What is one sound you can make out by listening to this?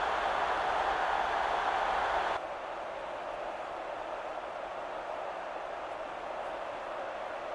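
A large crowd cheers steadily in a stadium.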